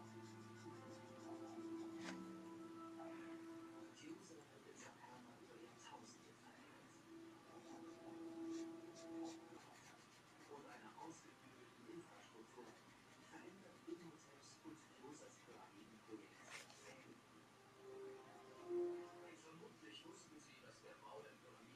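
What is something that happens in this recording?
A paintbrush dabs and brushes softly on paper.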